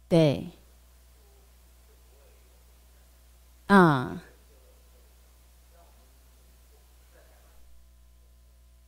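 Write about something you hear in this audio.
A young woman speaks into a microphone, heard through loudspeakers.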